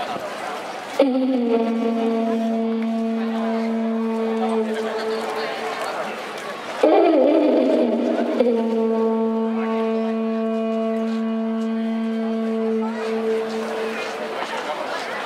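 Music with long held notes plays loudly over loudspeakers outdoors.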